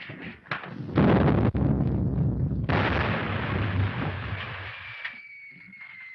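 A loud explosion roars and rumbles away.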